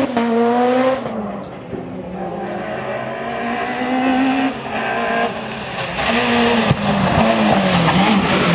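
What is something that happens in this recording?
A second rally car engine revs hard as it climbs toward the listener.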